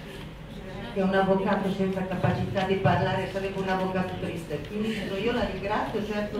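An older woman speaks loudly into a microphone, heard through loudspeakers.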